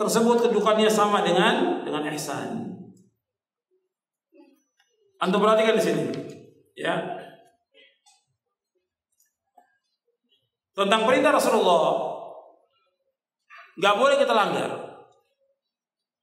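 An elderly man speaks slowly and in a chanting, drawn-out way into a microphone, with pauses between phrases.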